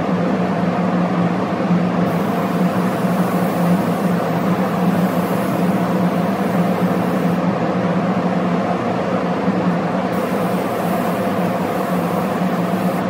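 A spray gun hisses steadily.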